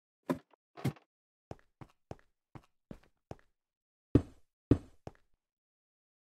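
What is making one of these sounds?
Footsteps tap on hard stone at an even pace.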